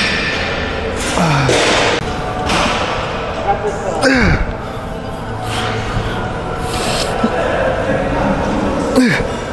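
A weight machine clanks and creaks as plates rise and fall.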